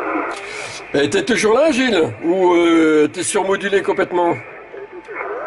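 A radio whistles and warbles as it is tuned.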